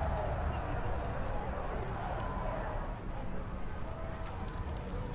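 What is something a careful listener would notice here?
Video game sound effects play steadily.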